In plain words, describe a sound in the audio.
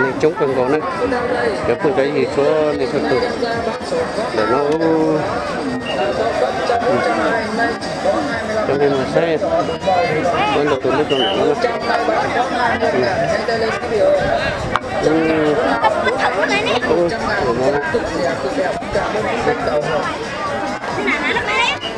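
A large outdoor crowd of men and women chatters all around.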